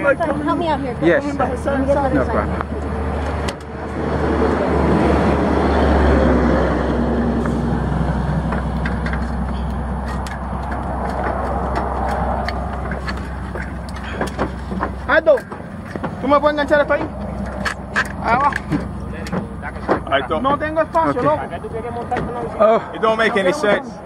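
Bicycles clatter and knock as they are lifted onto a rack.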